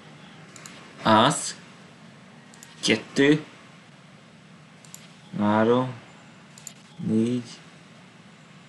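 Short chiming game sounds play as cards are cleared.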